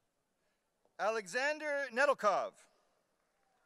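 A man reads out a name clearly through a microphone in a large echoing hall.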